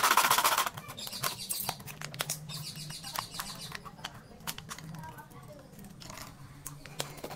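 Plastic bottles crinkle and crackle as hands handle them.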